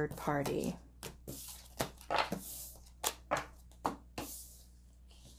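Cards slide and tap softly on a wooden table.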